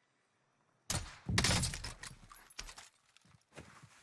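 A weapon is swapped with a metallic clatter.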